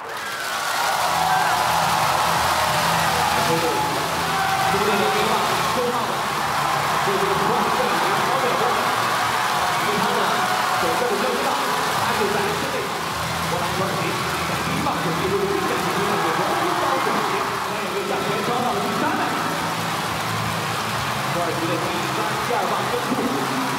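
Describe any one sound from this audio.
A large crowd cheers and roars throughout an echoing stadium.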